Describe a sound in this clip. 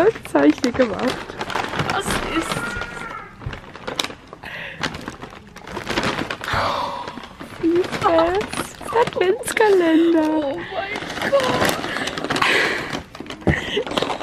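A young woman laughs and squeals with excitement close by.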